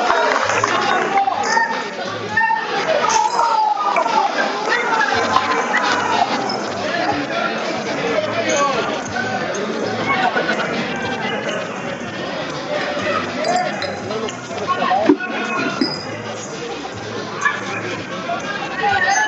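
A crowd of spectators chatters and cheers loudly in an echoing hall.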